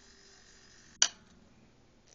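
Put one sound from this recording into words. A small metal instrument clicks down onto a metal plate.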